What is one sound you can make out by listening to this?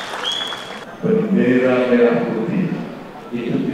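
A man speaks loudly into a microphone in an echoing hall.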